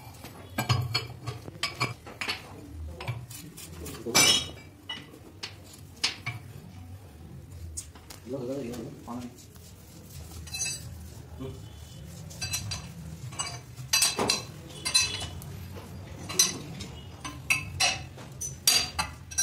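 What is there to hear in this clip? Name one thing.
Metal tools clank and knock against a steel press.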